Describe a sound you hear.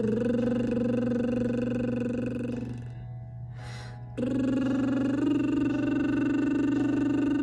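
A young woman hums long, steady notes close by.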